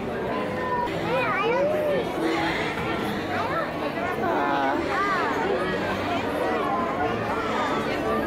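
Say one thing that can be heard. Children and women squeal with excitement close by.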